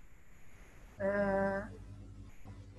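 A young woman speaks briefly over an online call, holding out a drawn-out sound.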